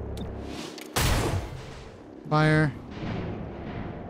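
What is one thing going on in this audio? A rifle fires loud shots.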